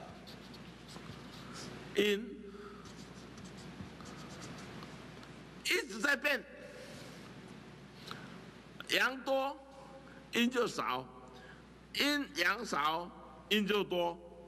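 A marker scratches across paper.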